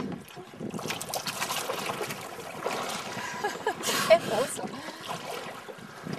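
A hand splashes in the water.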